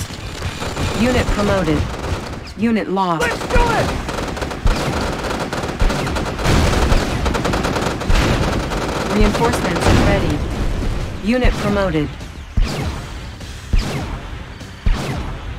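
Guns fire in short bursts with sharp cracks.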